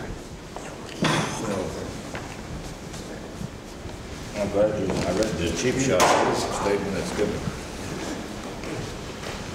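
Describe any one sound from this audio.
An elderly man speaks calmly and warmly close by.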